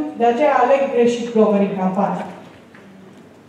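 A woman speaks into a microphone, heard over loudspeakers in a large room.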